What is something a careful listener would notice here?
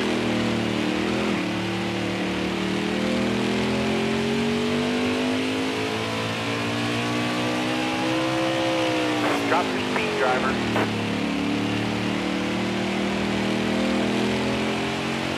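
A racing engine roars steadily, its pitch slowly rising and then dropping sharply as it slows.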